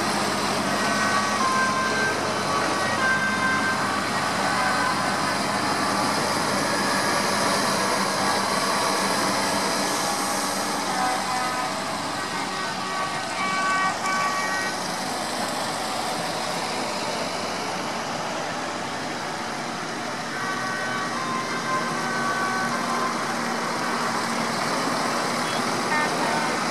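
Tractor engines rumble steadily as a line of tractors drives past close by.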